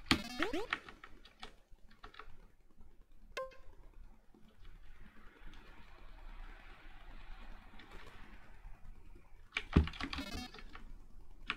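Electronic game beeps and blips sound in short bursts.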